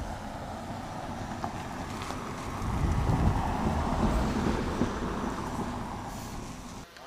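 An SUV drives past on asphalt.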